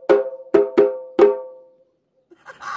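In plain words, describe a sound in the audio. A hand drum is struck four times, each beat ringing out.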